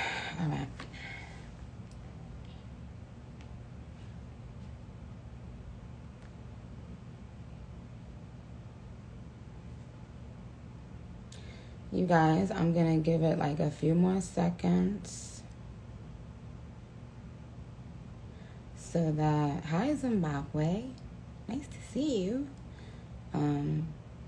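A young woman speaks calmly and close to a phone microphone, with long pauses.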